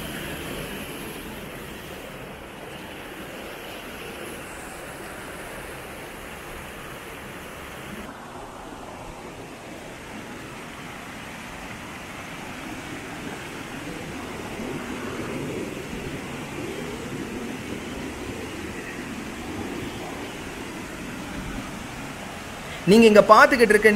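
Water rushes and splashes steadily over rocks in a stream.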